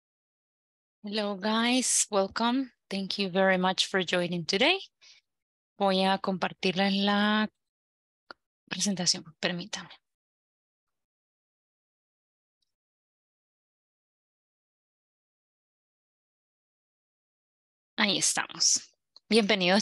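A woman speaks calmly through a headset microphone on an online call.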